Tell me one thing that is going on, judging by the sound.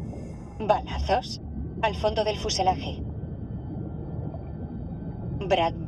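A man speaks tensely through a diving helmet radio.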